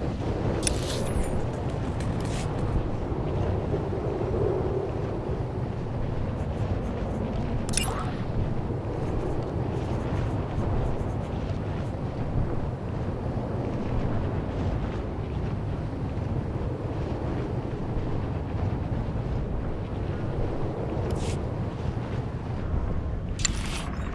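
A hovering vehicle's engine hums steadily and low.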